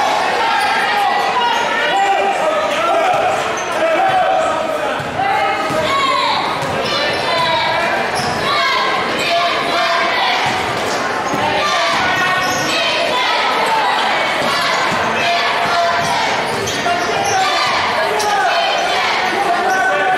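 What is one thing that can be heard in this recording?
A large crowd chatters and cheers in an echoing gym.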